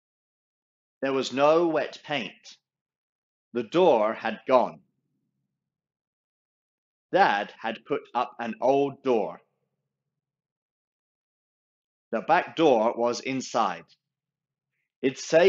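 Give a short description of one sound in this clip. A young man reads aloud expressively into a close microphone, with pauses.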